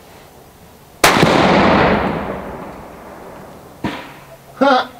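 A rifle fires a loud shot that echoes away outdoors.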